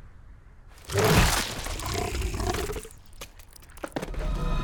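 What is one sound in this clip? A huge creature roars and growls.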